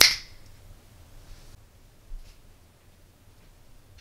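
A small plastic part is set down on a rubber mat with a soft tap.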